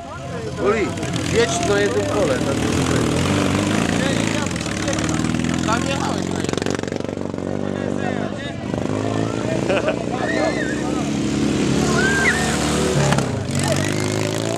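A motorcycle engine drones and revs nearby.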